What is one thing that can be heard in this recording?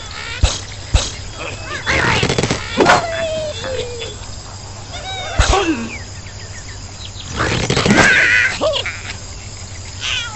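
A slingshot snaps as a bird is flung through the air.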